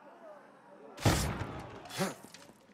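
A sword slashes with a sharp swish.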